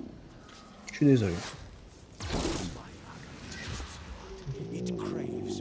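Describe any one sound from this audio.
Magic spells burst with sharp whooshes.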